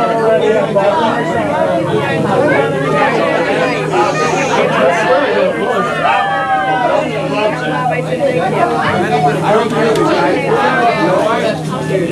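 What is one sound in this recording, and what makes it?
Several men talk and chatter all at once in a lively, crowded room.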